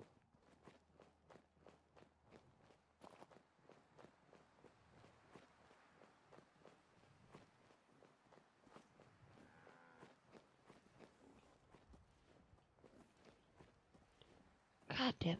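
Footsteps tread steadily and quickly on rough pavement.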